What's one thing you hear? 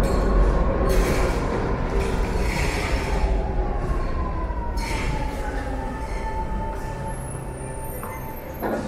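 A metro train rolls along the platform with a rumble and a falling whine.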